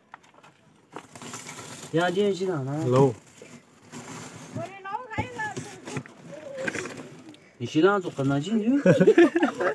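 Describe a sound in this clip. A plastic sack rustles and crinkles as it is handled.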